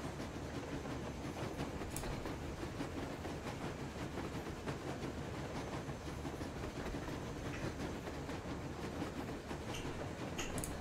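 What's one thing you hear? A train engine rumbles steadily.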